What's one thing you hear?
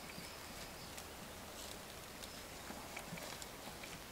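Soil rustles faintly as a small animal crawls out of a burrow.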